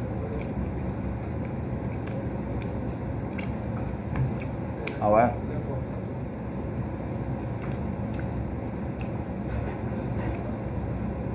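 A man chews food noisily with wet smacking sounds, close by.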